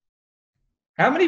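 A man speaks over a microphone in an online call.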